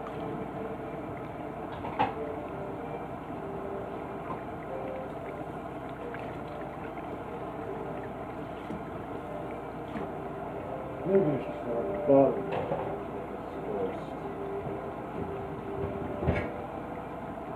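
Dishes clink and clatter as they are washed.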